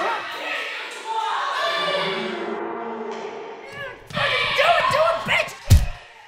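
A woman cries out in anguish close by.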